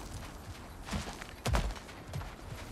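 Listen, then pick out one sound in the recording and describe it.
A heavy body lands hard with a thud.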